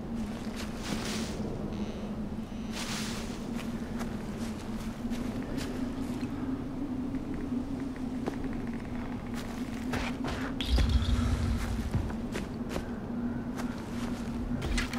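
Footsteps crunch through snow and dry grass.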